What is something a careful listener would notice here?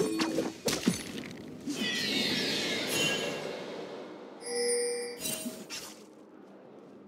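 Video game spell effects and hits crackle and whoosh in quick bursts.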